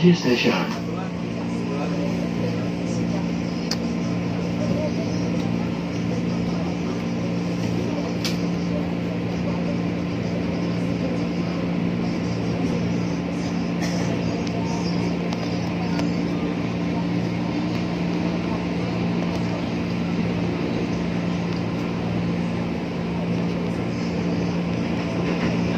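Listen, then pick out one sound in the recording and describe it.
A train hums and rumbles steadily as it rolls along the tracks.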